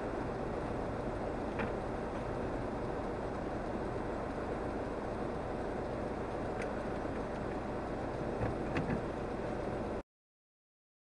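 A car engine hums steadily at low speed.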